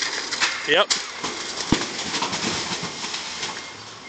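A pallet of bagged goods topples off a forklift and crashes down.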